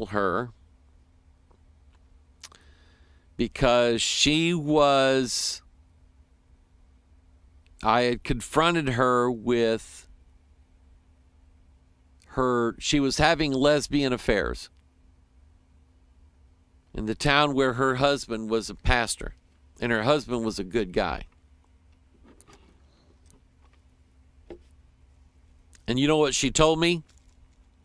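A middle-aged man speaks calmly into a close microphone, in bursts with pauses.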